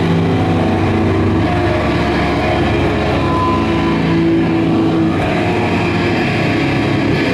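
A bass guitar plays a low line.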